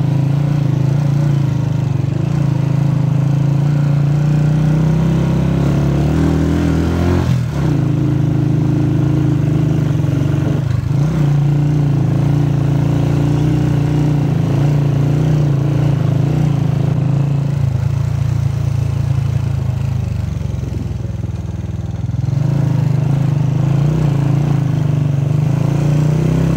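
An engine hums steadily as a vehicle drives along.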